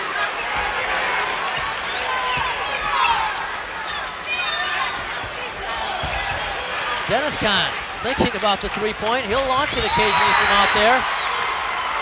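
A large crowd murmurs and cheers in an echoing gym.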